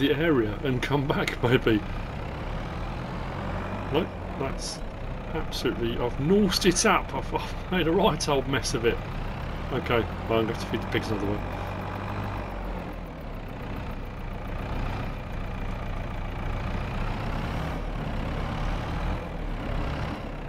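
A loader's diesel engine rumbles steadily as it drives.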